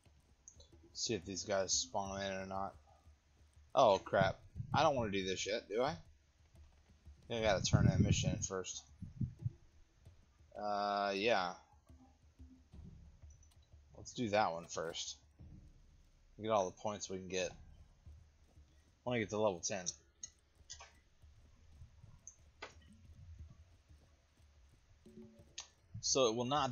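A man talks calmly and with animation into a close microphone, in short bursts.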